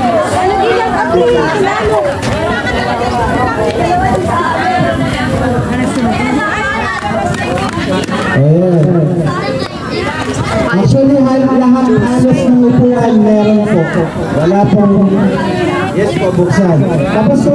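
A crowd of people sings together outdoors.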